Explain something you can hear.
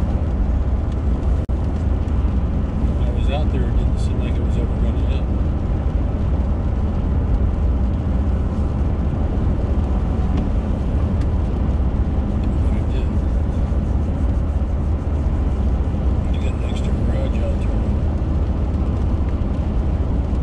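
Tyres rumble low and steady on a wet road.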